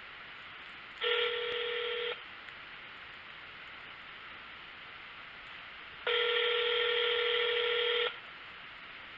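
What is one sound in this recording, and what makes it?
A man hums a long steady note close by.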